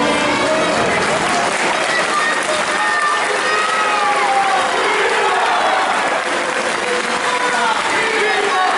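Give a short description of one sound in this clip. Many voices of men and women call out and chant together.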